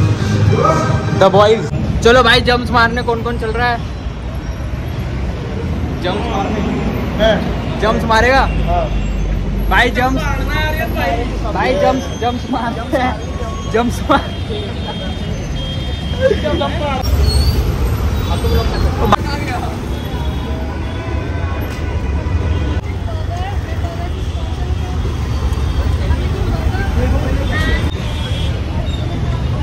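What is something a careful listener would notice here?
Traffic rumbles along a busy road outdoors.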